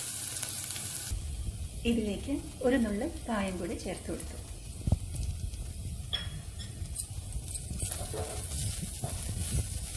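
A spatula scrapes and stirs food in a metal pot.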